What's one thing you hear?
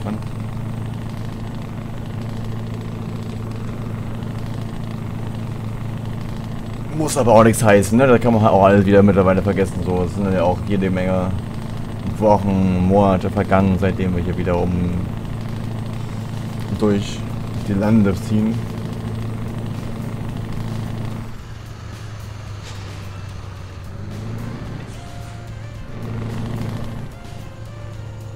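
A truck engine hums steadily at a low pitch.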